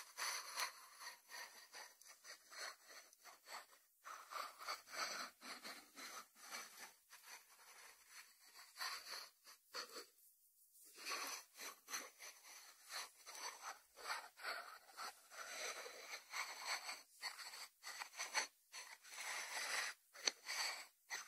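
Fingertips tap and scratch on a ceramic lid.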